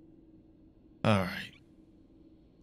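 A game menu plays a short sweeping whoosh as the map changes.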